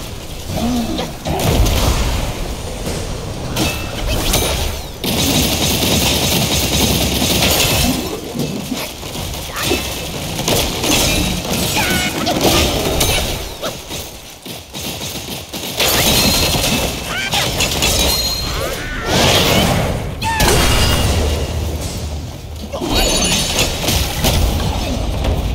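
A staff whooshes through the air.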